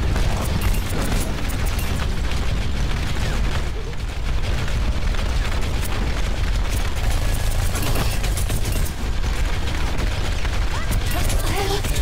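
Rapid video game gunfire crackles steadily.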